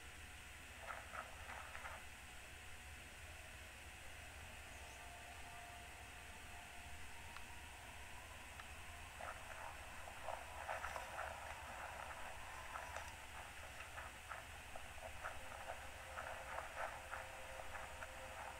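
Footsteps patter quickly over dirt and gravel.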